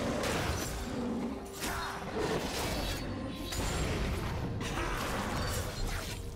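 A sword slashes with sharp swishing strikes again and again.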